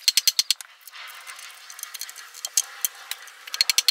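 A chisel scrapes and peels bark from a log.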